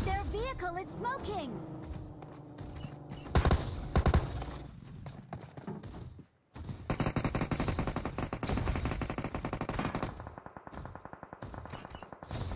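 A heavy metal robot stomps along with rapid clanking steps.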